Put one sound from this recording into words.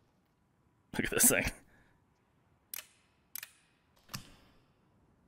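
A gun's metal parts click and clack as it is handled.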